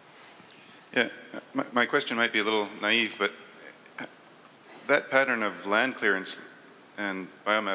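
A man speaks up loudly in a large, echoing hall.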